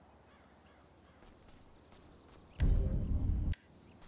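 Footsteps run quickly across grass.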